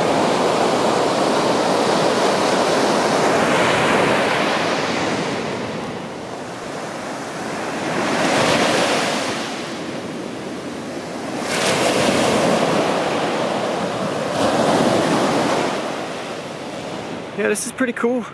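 Waves wash up and break on the shore in rolling surges.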